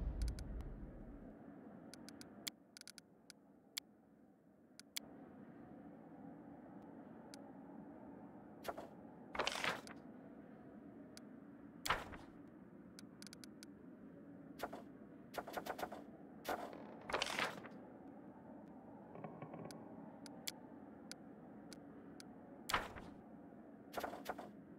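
Soft game menu clicks sound now and then.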